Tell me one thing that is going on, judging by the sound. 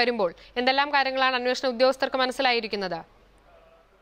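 A young woman reads out the news calmly into a microphone.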